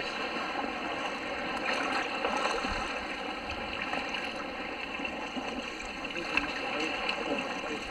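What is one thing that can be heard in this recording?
A whale blows out a loud breath nearby.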